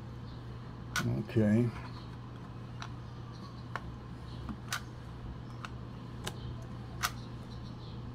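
Small plastic parts click and snap as they are handled.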